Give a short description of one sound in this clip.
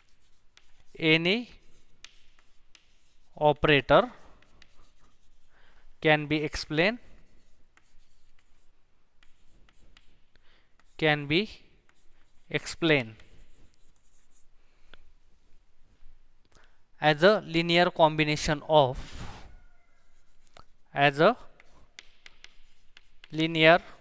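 A man speaks in short, calm phrases through a close microphone.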